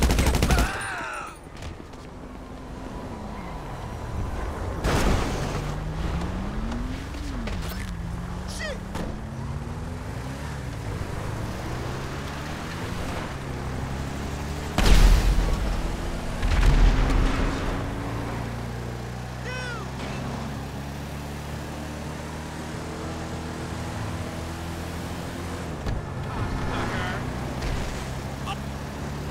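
A heavy vehicle engine roars and revs as it drives along a road.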